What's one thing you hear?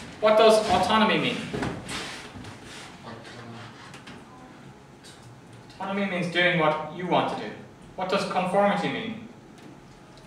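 A man lectures into a microphone in a room with some echo, speaking in short bursts.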